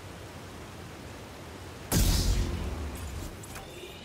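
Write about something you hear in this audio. Water pours down a waterfall nearby.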